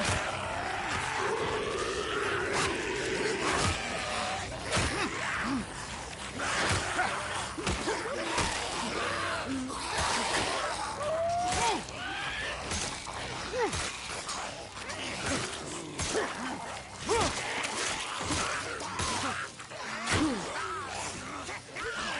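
Blows land with heavy thuds in a close fight.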